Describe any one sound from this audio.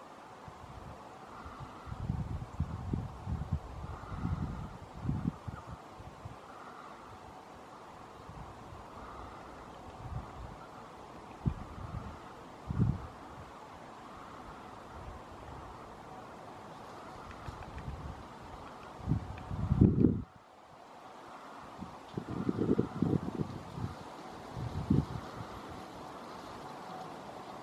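A small bird rustles through dry grass while foraging.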